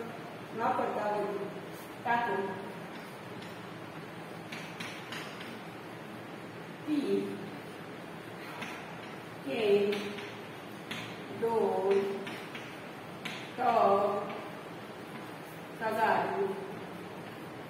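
A woman speaks in short, calm phrases nearby.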